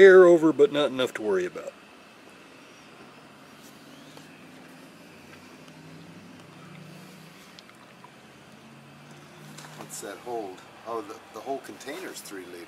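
Oil glugs and trickles from a plastic jug into a funnel.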